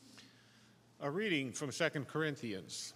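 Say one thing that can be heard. A man speaks loudly over a microphone in a large echoing hall.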